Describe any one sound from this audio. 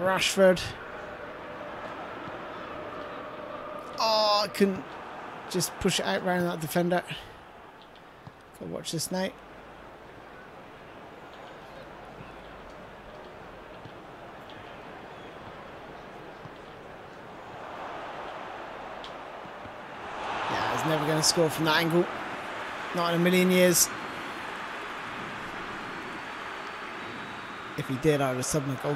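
A large stadium crowd murmurs steadily and swells into a roar.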